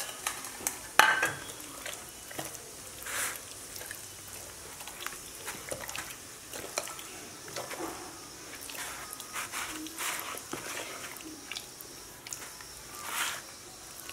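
Hands squelch wetly as they rub marinade into a raw chicken.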